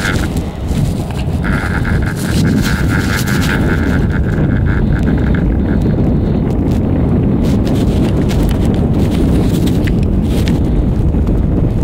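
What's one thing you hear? A chairlift clatters and squeaks as it rolls along its cable.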